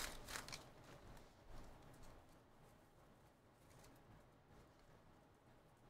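Trading cards rustle and slide between fingers.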